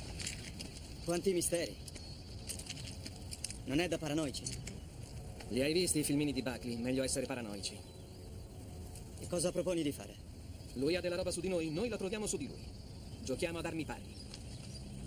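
A man speaks calmly nearby outdoors.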